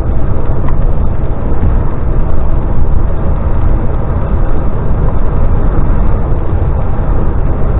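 A vehicle's engine drones steadily.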